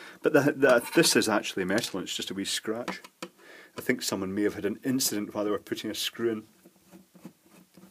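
A screwdriver scrapes against a plastic cover.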